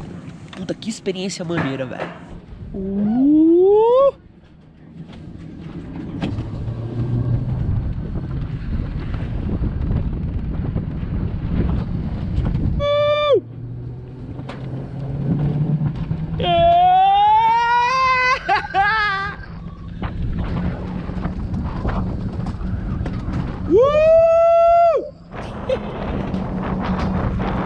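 A sled rumbles steadily along a metal track.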